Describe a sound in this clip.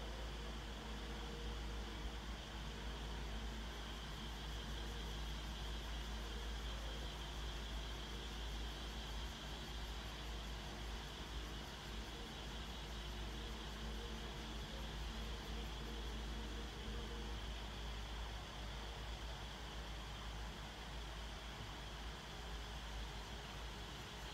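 An electric fan hums steadily nearby.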